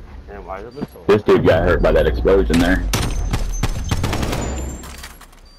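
Gunshots fire in quick bursts nearby.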